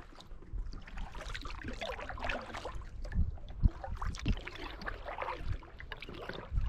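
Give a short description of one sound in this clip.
Water laps gently close by.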